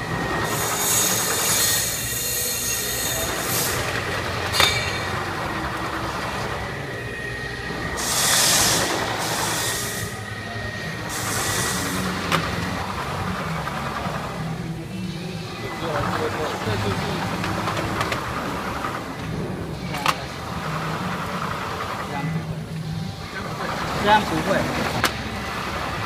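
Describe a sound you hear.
A plastic slat conveyor runs with a steady mechanical whir and rattle.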